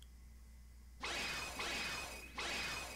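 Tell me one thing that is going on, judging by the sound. A magical blast whooshes loudly.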